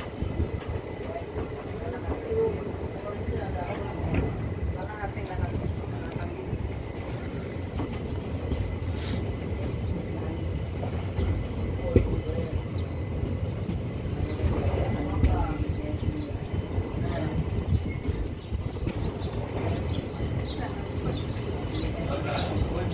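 A train rumbles steadily as it rolls slowly along.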